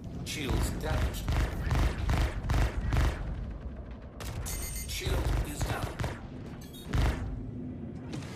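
Laser cannons fire in rapid bursts with booming blasts.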